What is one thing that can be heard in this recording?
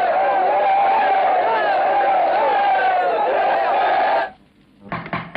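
A crowd chants and sings loudly.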